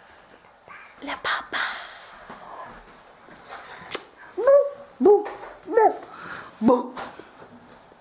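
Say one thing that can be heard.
A young woman speaks playfully and with animation, close by.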